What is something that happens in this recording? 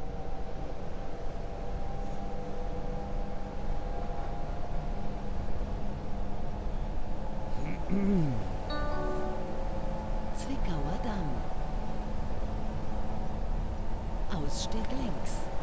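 A train motor hums and rumbles steadily as a subway train runs through a tunnel.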